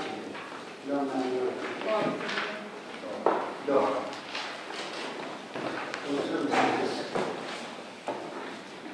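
A man speaks calmly through a microphone in a room with some echo.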